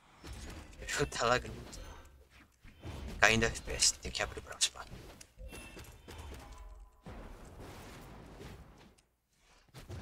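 Cartoon fighting game hits and whooshes sound in quick bursts.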